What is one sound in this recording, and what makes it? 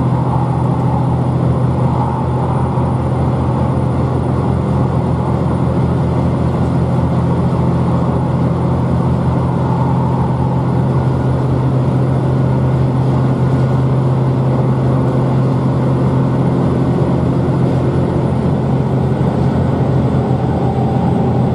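A train's interior hums and rumbles steadily as it travels.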